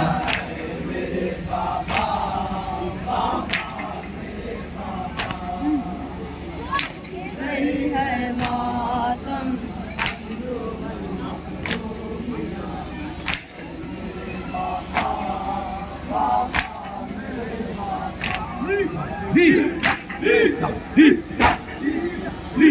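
Men beat their chests in a steady rhythm.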